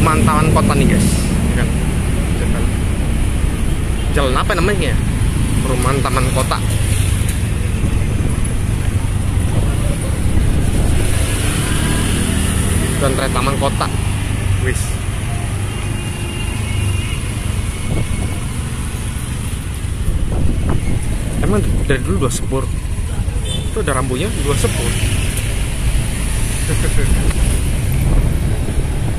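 Motorbike engines rumble close by on a street.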